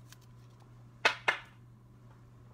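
A hard plastic card holder clicks as a hand picks it up off a table.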